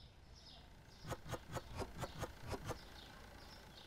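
Packets are set down on a shelf in quick taps.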